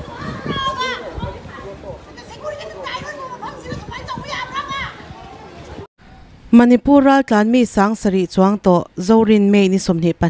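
Several women shout and argue angrily nearby.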